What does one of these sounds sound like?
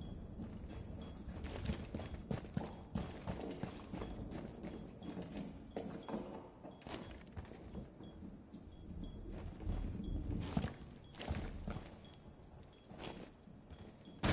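Footsteps thud and scuff on a hard floor.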